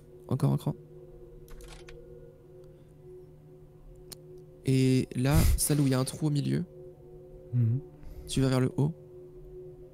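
A man talks close to a microphone, in short animated bursts.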